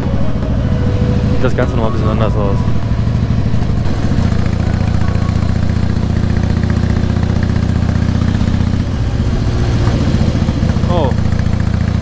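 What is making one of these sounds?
A motorcycle engine rumbles steadily at close range.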